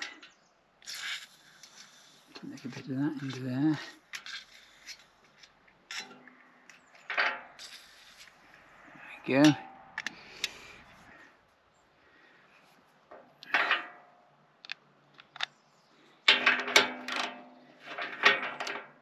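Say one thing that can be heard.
Metal tools click and clink against metal.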